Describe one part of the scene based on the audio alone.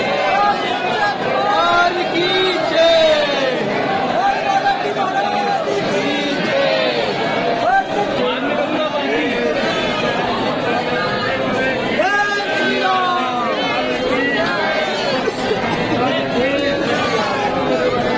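A large crowd of men and women chatters loudly and continuously close by.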